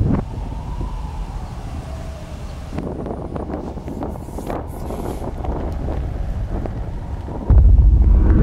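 A jet engine roars loudly as a plane takes off.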